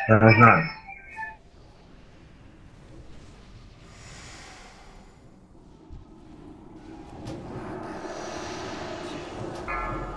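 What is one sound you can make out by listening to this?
Spells crackle and blast in a fantasy battle.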